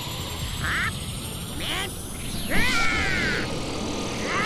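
An energy blast roars and crackles.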